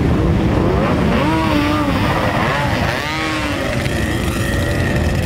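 Motorcycle engines rev up sharply in rising bursts.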